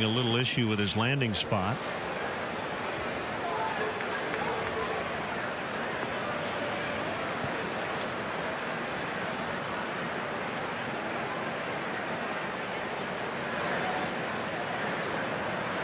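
A large crowd murmurs steadily outdoors.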